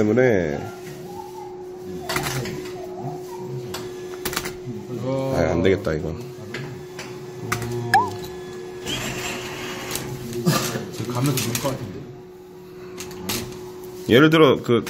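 A claw machine's crane whirs and clicks as the claw moves.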